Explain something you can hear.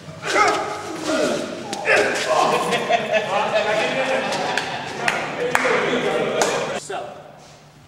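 A group of men shout and talk over one another loudly.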